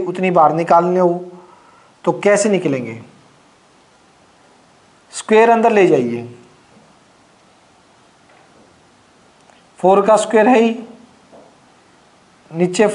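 A man speaks calmly in short phrases through a close microphone.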